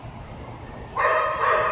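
A small dog barks loudly nearby.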